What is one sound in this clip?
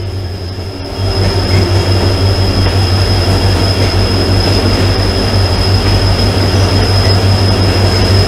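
A train's rumble suddenly grows louder and booms inside a tunnel.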